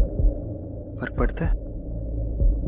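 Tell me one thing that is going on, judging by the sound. A man speaks in a low, firm voice.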